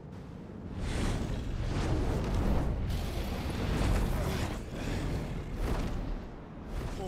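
A large beast roars loudly.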